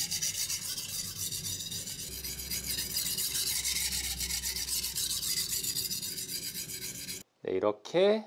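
A knife blade scrapes back and forth rapidly on a sharpening stone.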